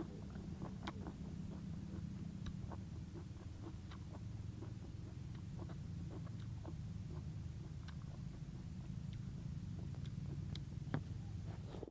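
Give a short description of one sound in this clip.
A young man chews and slurps food close by.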